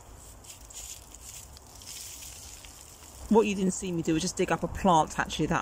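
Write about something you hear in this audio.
Dry soil rustles and crumbles as a root ball is handled.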